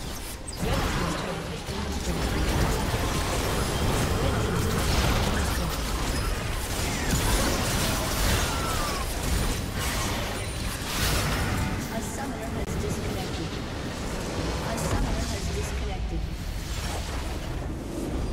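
Game spells and weapons clash and blast in a busy fight.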